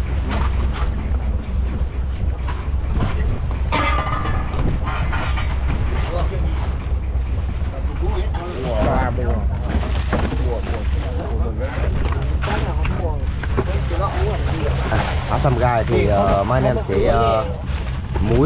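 Men talk and call out nearby.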